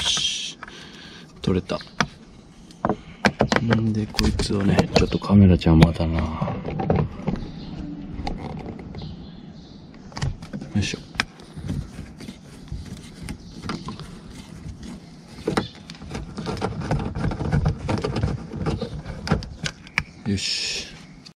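Plastic trim clicks and knocks as it is pried loose.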